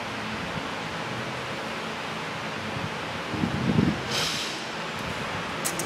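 A metal gasket clinks and scrapes against an engine block.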